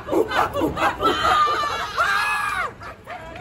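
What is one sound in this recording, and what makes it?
A young man yells with a long drawn-out cry.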